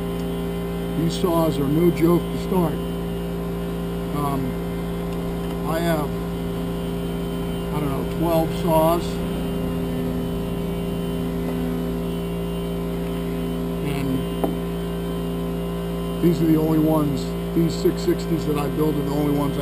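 A middle-aged man talks calmly nearby.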